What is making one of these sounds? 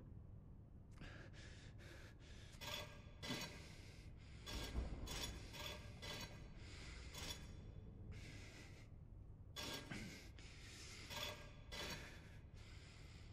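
Heavy stone discs grind and scrape as they turn.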